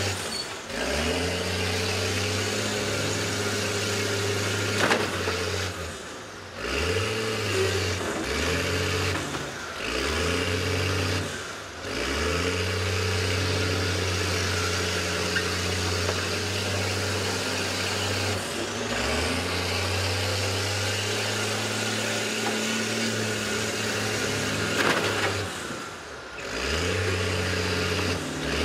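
Heavy bus engines roar and rev loudly, dropping off and surging again.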